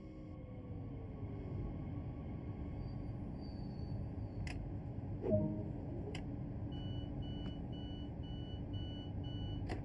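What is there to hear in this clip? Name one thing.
A train's motor hums and rumbles steadily.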